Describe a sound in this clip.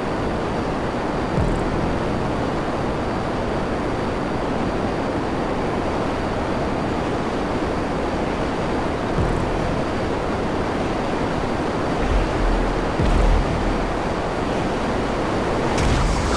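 A jet engine roars steadily.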